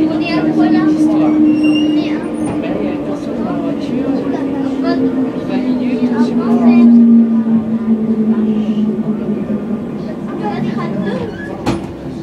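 A subway train's motor hums loudly and slowly falls in pitch as the train slows.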